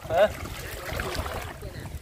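Water splashes and sloshes around a net being lifted.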